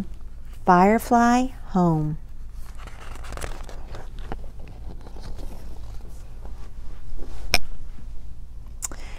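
A middle-aged woman reads aloud in a warm, expressive voice close to the microphone.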